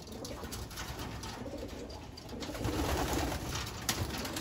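Pigeons flap their wings in a burst.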